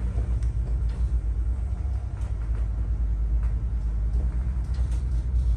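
Waves slosh against a boat's hull.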